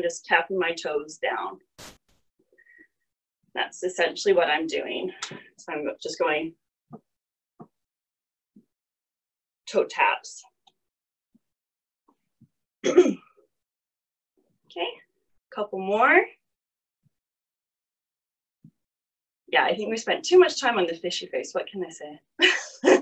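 A woman speaks calmly into a microphone, instructing in bursts with pauses.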